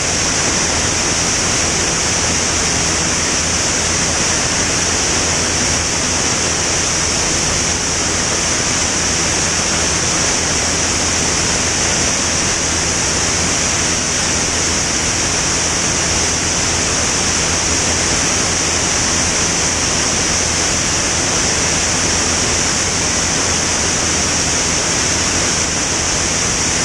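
A small propeller engine drones steadily and loudly.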